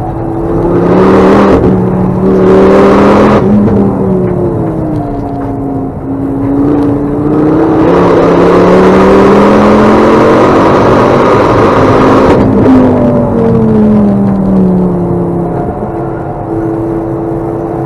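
A racing car engine roars loudly from inside the cabin, rising and falling in pitch as the gears shift.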